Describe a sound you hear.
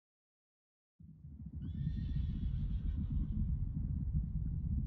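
Wind roars and gusts outdoors.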